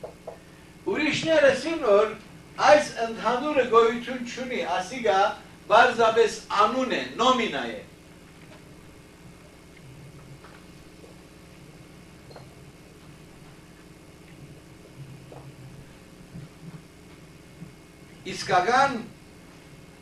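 An elderly man speaks calmly, with some room echo.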